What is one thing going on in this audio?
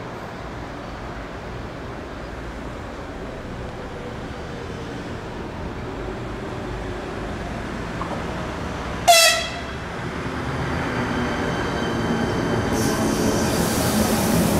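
A double-deck electric passenger train approaches, its rumble growing louder.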